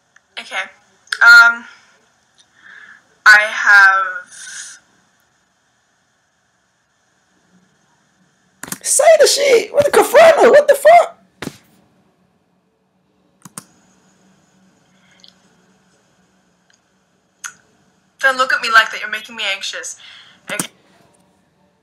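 A young woman talks casually, heard through a phone recording.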